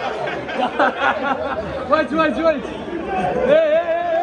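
A man cheers loudly with excitement.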